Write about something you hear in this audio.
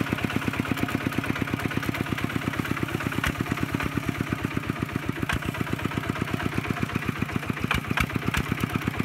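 Muddy water splashes and churns.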